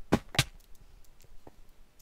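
A pickaxe chips at stone blocks in a video game.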